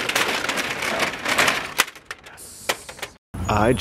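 Shopping cart wheels rattle over pavement.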